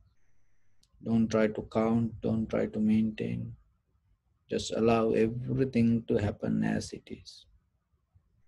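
A man speaks calmly and slowly, close to a microphone.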